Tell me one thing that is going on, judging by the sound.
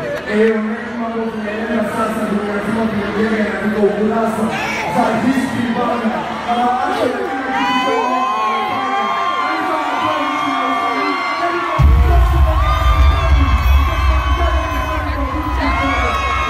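A large crowd sings along loudly.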